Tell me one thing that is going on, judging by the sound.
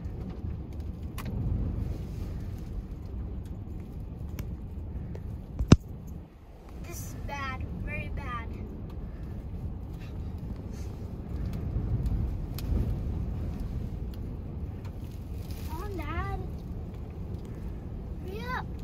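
Strong wind roars and buffets against a car.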